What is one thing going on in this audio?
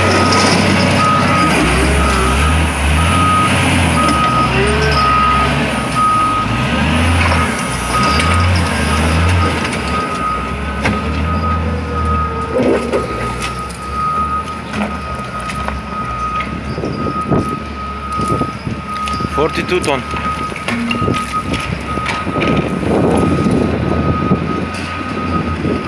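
A heavy loader's engine beeps with a steady reversing alarm.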